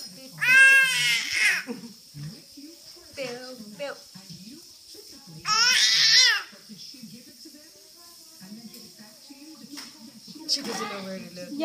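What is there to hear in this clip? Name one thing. A baby squeals and coos up close.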